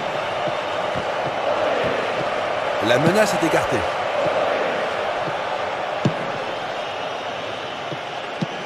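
A football thuds off a player's boot.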